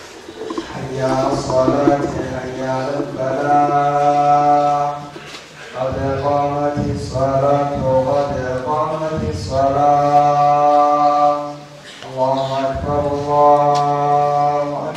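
A man chants melodiously into a microphone, in long sustained phrases.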